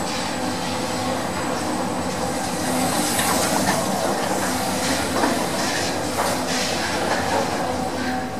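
A lift rumbles and hums steadily as it moves.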